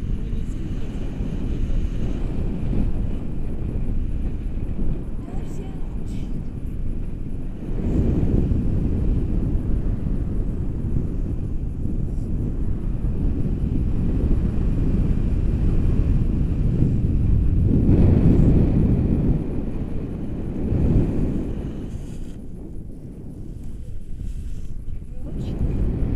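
Strong wind rushes and buffets past a microphone, loud and low.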